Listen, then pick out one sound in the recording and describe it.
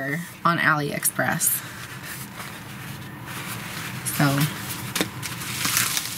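A sheet of stiff paper rustles and crinkles as it is bent and handled.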